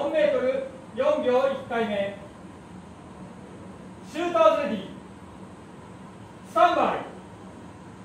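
A man calls out short commands loudly nearby.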